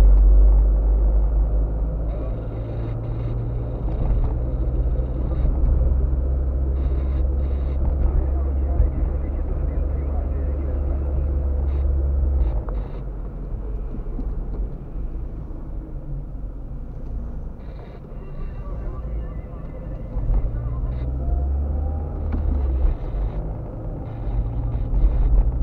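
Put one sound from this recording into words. Tyres roll on an asphalt road.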